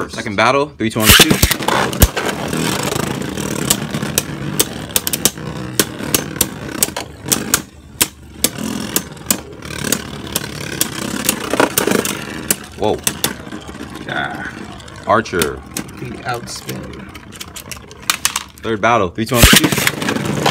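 Spinning tops are launched with a sharp rip.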